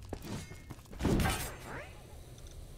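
A loud whoosh sounds once.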